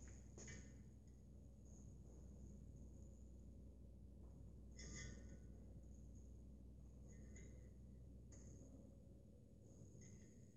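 Small metal parts click and tap together.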